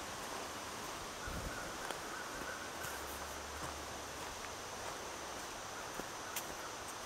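Water rushes steadily in the distance, outdoors.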